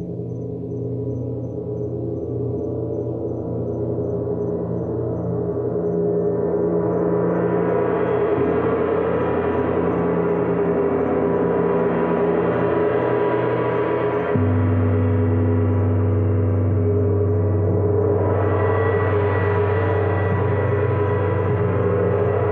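A smaller gong rings with a deep, sustained tone.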